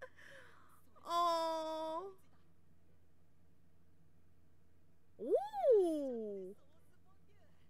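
A young person wails in a long drawn-out cry close to a microphone.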